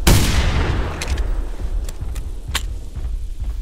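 A shotgun is reloaded with sharp metallic clicks.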